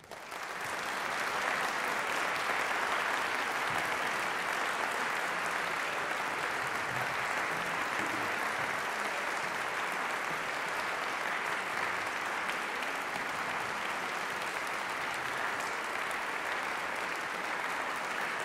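An audience applauds steadily in a large hall.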